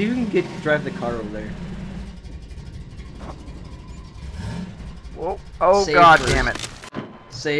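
A buggy engine rumbles and rattles.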